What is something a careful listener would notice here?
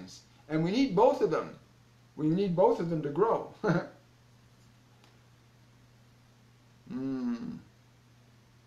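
An older man speaks with animation close to a microphone.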